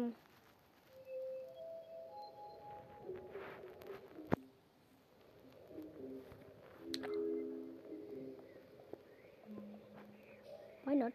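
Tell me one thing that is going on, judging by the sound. Short game melody tones play softly.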